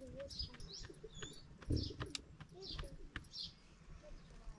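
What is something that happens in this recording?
An elderly woman pats dough between her hands with soft slaps.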